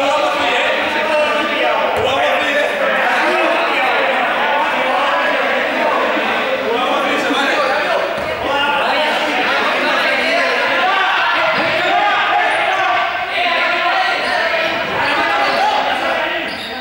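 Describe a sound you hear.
Balls bounce on a hard floor.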